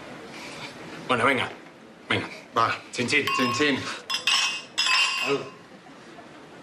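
Young men call out together in a toast.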